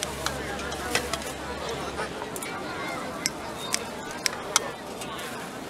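Scissors snip through food.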